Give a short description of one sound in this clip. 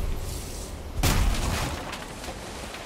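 A log breaks apart with a heavy crunching crash.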